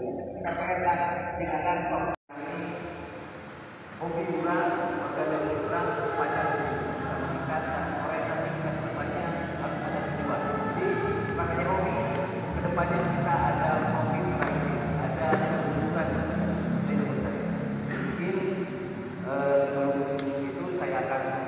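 A man speaks with animation through a microphone and loudspeaker in an echoing hall.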